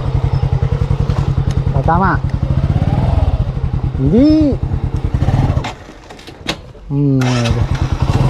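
A motorcycle engine idles with a steady, rapid putter close by.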